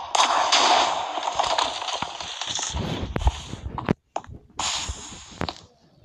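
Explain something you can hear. Stone blocks crack and break in quick knocks.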